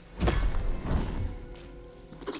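A bright chime rings out with a swell of sound.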